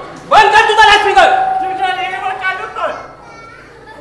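A man shouts loudly, heard in a hall.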